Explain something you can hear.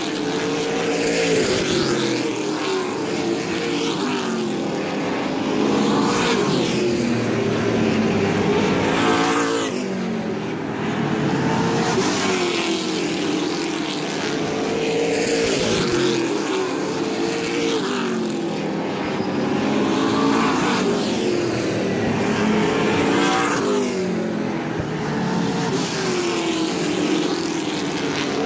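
Engines rise and fall in pitch as cars pass close by and fade away.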